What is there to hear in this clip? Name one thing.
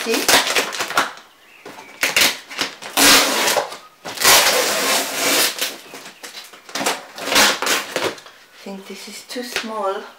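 Packing tape tears loudly off cardboard.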